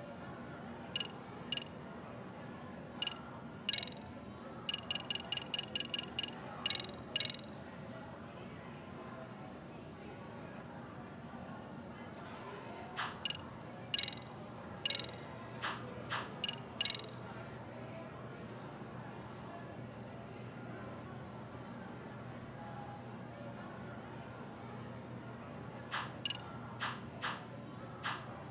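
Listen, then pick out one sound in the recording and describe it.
Menu interface beeps and clicks sound as selections change.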